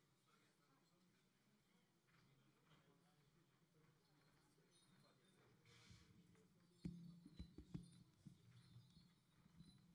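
A folk band plays softly.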